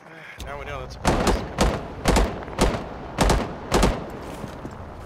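A rifle fires loud shots in quick bursts.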